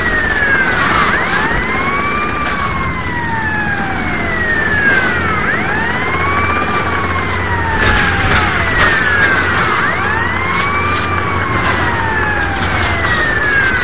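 A car engine roars as it speeds along.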